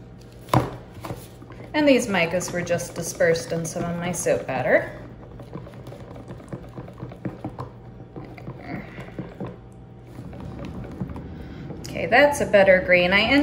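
A wire whisk taps and scrapes against a plastic cup as a thick liquid is stirred.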